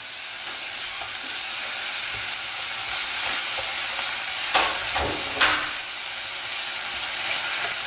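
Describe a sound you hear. A spatula stirs and scrapes food in a pan.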